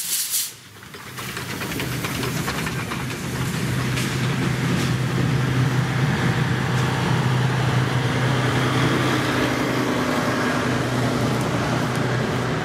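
Train carriages rumble and clatter past on the rails.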